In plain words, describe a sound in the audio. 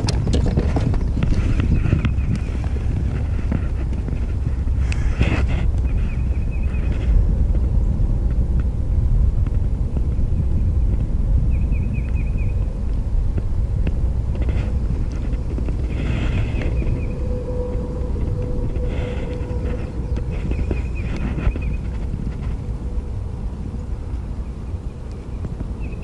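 Wind buffets the microphone steadily.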